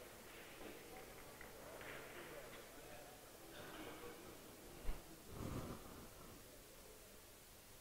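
Billiard balls click against each other and roll.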